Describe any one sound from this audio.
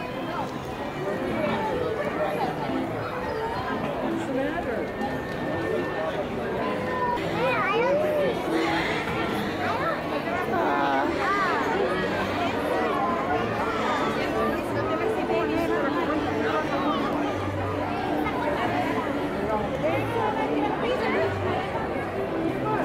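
A crowd of adults and children chatters all around outdoors.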